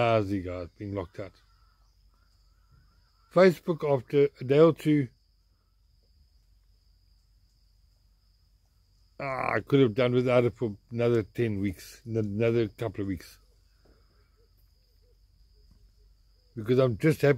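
An elderly man speaks close up, with animation, in short bursts and pauses.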